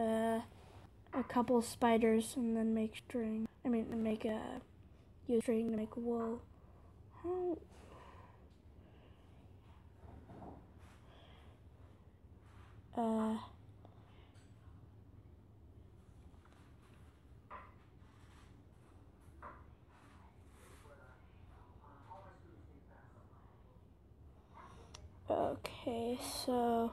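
A young boy talks with animation, close to a microphone.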